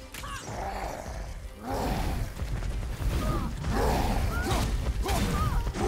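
A huge stone creature stomps heavily across the ground with deep booming thuds.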